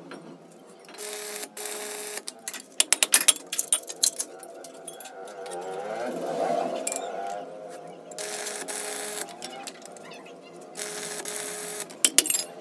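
An electric welder crackles and hisses in short bursts.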